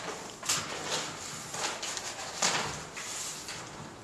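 Paper rustles close by.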